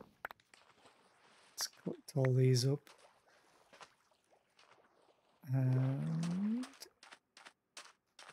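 Water splashes with swimming strokes.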